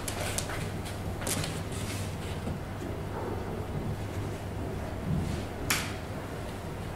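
A comb rasps through hair.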